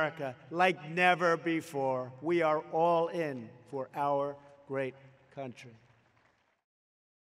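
An elderly man speaks firmly into a microphone, heard through loudspeakers.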